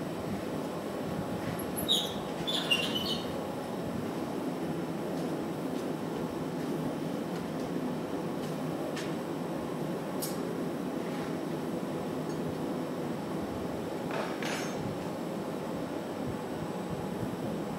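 A furnace roars steadily.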